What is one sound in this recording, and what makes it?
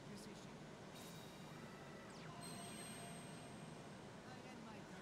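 Electronic game sound effects chime and whoosh.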